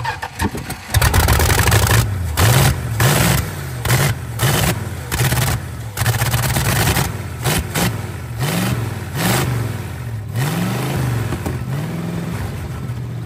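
An old car engine revs up and down unevenly.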